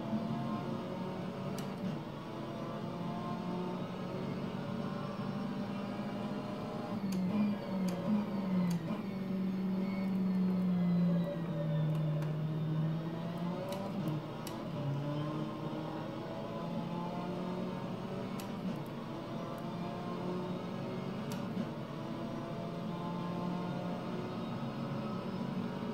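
A racing car engine drones and shifts pitch through a game's speakers.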